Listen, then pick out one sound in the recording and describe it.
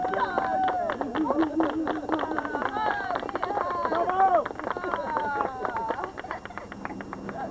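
A group of people claps in rhythm.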